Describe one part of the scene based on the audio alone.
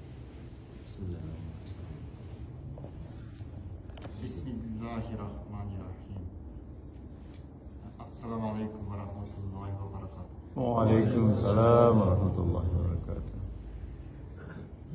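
Elderly men chant from books in a melodic voice, close by.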